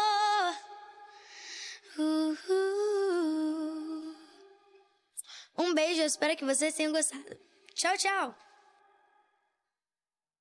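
A young girl sings a slow, heartfelt melody close to a microphone.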